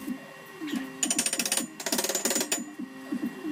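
A hammer strikes metal with sharp clangs.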